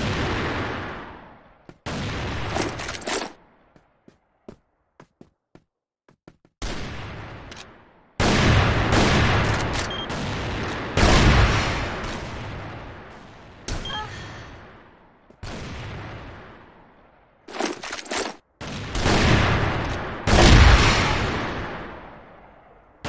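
A rifle fires loud, booming shots that echo and slowly fade.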